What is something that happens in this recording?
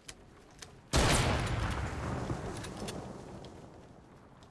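A loud gunshot booms and echoes away.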